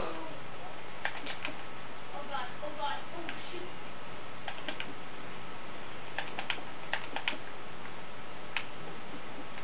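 Blocks crack and tap repeatedly as they are mined in a video game, heard through a television speaker.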